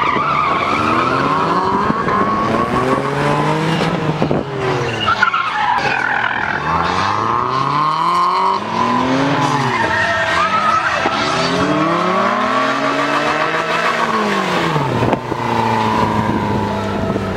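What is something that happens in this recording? Tyres squeal on asphalt.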